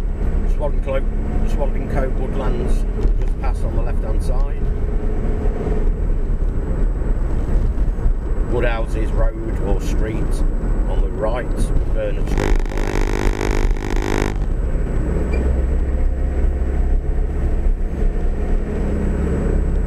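Tyres roll on the road surface.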